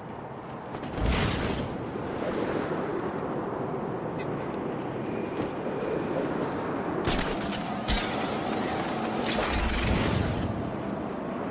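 Wind rushes loudly past a figure gliding through the air.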